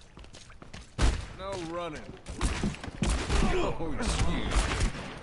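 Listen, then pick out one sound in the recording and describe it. A gun fires in rapid, loud bursts.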